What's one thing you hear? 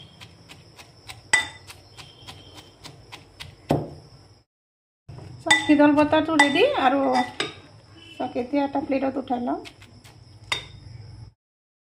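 A metal pestle pounds in a metal mortar with sharp knocks.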